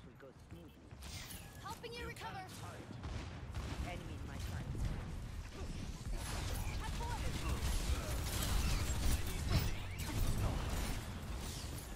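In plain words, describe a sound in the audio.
Weapons fire and blasts crackle in a heated battle, growing louder and denser.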